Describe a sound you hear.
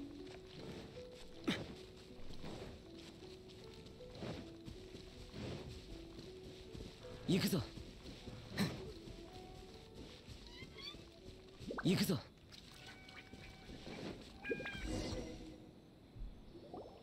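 Soft game music plays with gentle sustained notes.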